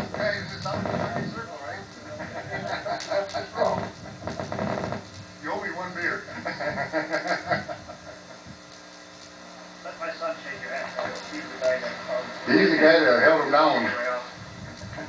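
An older man talks and laughs close by, outdoors.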